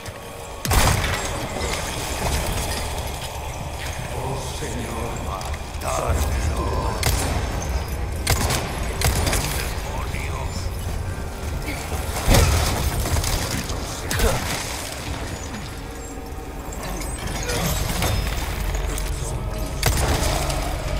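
A handgun fires loud single shots in a large echoing hall.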